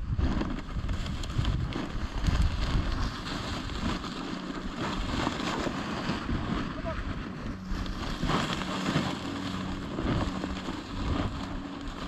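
Wind buffets outdoors.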